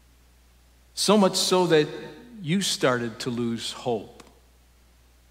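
A middle-aged man speaks calmly into a microphone in a large echoing hall.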